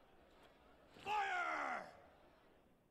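A young man shouts a command.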